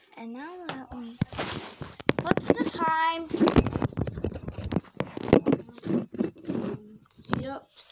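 Clothing rustles and thumps against a handheld device.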